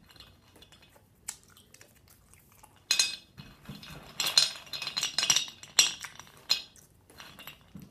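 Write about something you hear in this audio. Hard candies rattle and clack against each other.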